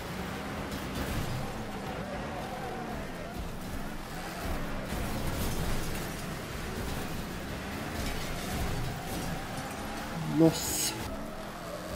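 Metal crunches as cars crash into each other.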